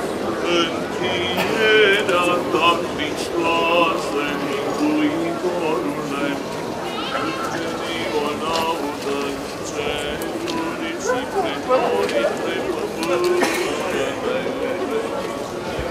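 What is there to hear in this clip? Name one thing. A crowd of men and women sing together in a chant.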